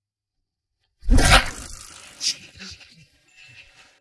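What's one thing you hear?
A middle-aged man speaks.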